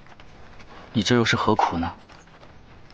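A young man speaks quietly and gently, close by.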